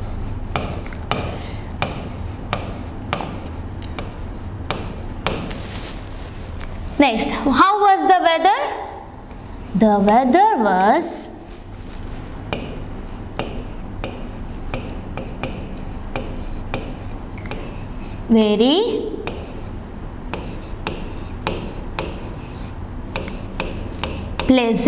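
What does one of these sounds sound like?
A pen taps and scratches against a board.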